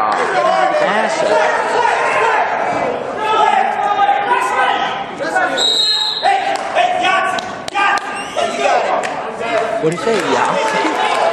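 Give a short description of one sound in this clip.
Spectators shout encouragement in an echoing gym.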